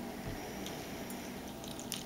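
Water trickles and splashes.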